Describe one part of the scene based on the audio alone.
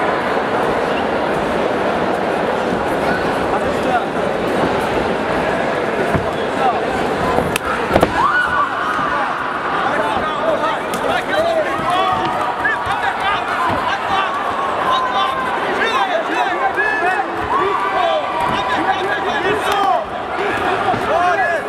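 Punches thud against bodies.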